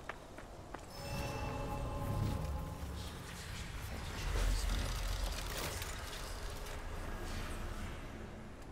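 A magical shimmering hum swells and rings out.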